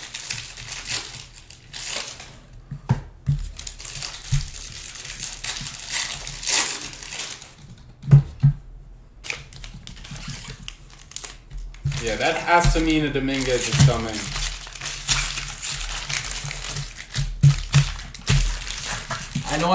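Cardboard boxes rustle and tap as hands sort them.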